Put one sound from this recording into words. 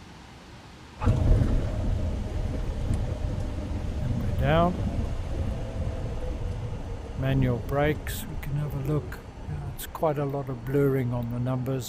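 Aircraft wheels rumble over a runway.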